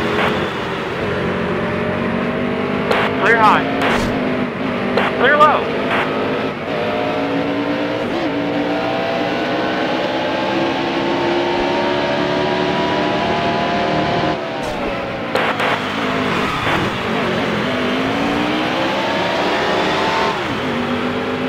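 Racing car engines roar at high revs, rising and falling in pitch as cars shift gears.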